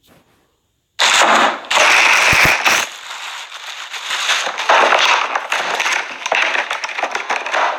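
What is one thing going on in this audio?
A plastic wrapper crinkles loudly close by.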